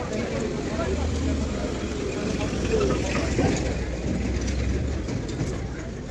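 A motorbike engine idles close by with a low rumble.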